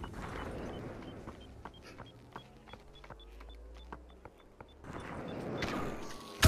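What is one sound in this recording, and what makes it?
Footsteps crunch steadily over rocky ground.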